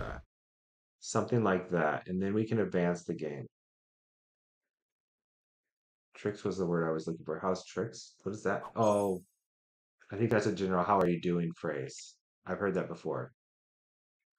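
A man talks into a microphone with animation, close up.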